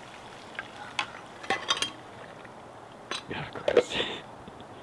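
A metal pot clinks.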